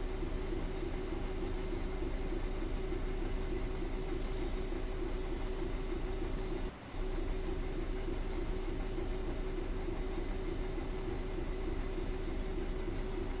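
A train engine drones steadily.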